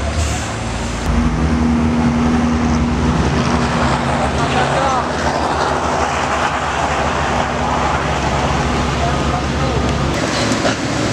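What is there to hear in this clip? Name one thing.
A heavy truck engine idles with a low, steady rumble.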